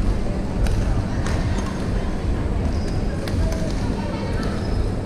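Rackets hit shuttlecocks with sharp pops in a large echoing hall.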